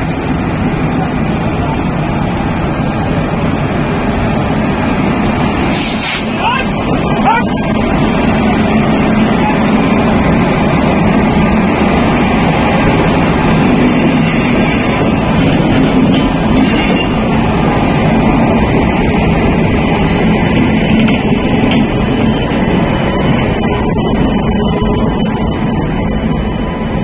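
A train rumbles past close by with a steady low roar.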